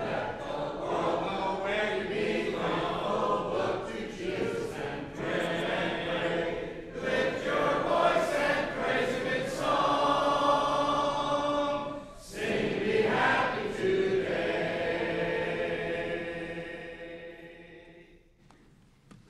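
A middle-aged man preaches with animation through a microphone in an echoing hall.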